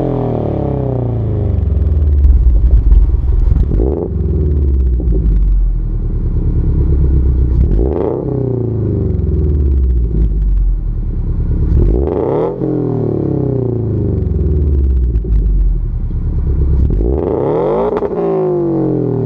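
A car exhaust rumbles loudly close by as the engine is revved repeatedly, rising and falling.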